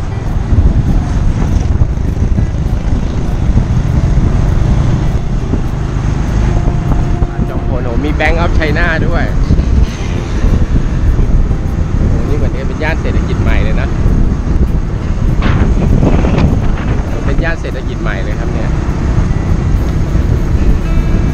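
A motorbike engine hums steadily up close.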